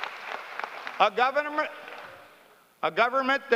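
An older man speaks to a crowd through a microphone and loudspeakers.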